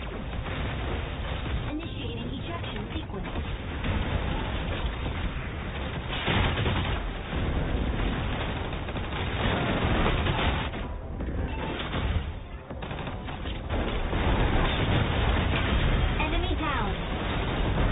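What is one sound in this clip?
Explosions boom and gunfire rattles in a battle.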